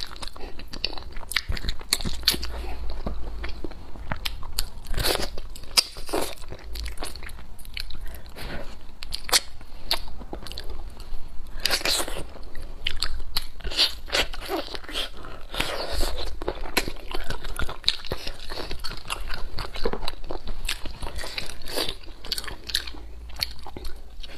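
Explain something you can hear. A young woman chews and smacks loudly close to a microphone.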